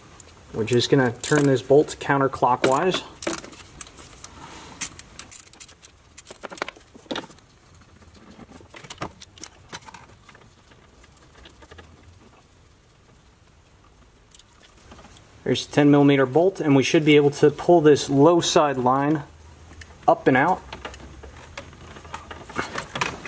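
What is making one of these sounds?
Metal and plastic parts click and knock under working hands.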